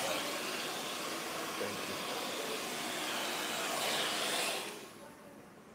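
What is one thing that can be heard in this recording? A hair dryer blows loudly nearby.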